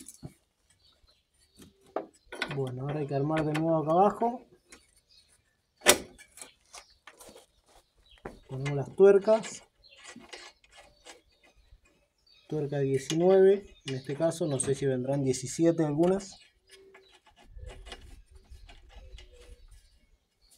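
Metal tools clink and scrape against car parts.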